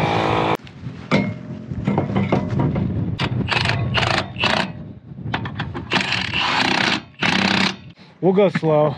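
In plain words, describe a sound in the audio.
An impact wrench rattles in short bursts.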